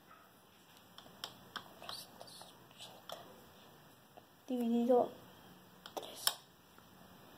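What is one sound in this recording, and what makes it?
Calculator keys click softly as fingers tap them.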